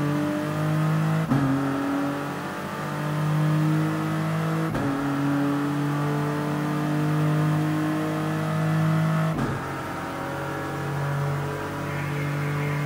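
A racing car engine accelerates hard, climbing in pitch and dropping with each upshift.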